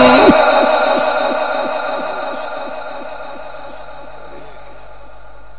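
A man chants a long held note through a loudspeaker, and the note echoes and slowly fades.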